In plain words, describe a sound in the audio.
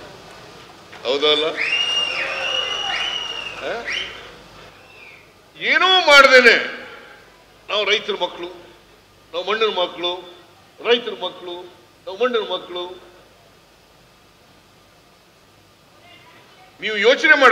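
An elderly man speaks with animation through a microphone and loudspeakers, with short pauses between phrases.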